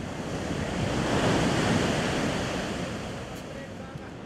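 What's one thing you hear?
Waves crash and roar on a beach.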